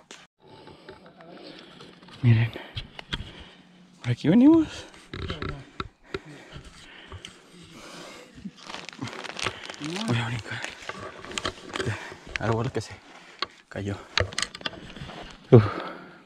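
Leaves and twigs rustle as someone pushes through dense undergrowth.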